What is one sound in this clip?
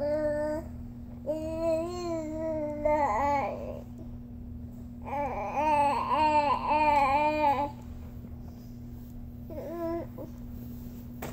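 A baby vocalizes in long, high, sing-song sounds close by.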